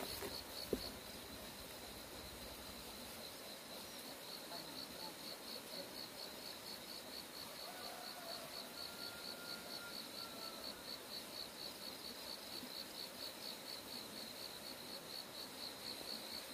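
Footsteps swish through grass nearby and fade into the distance.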